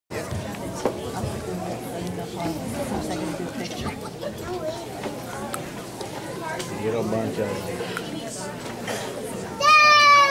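Many children and adults chatter and murmur in a large echoing hall.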